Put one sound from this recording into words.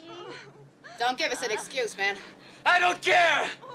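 A second woman shouts commands.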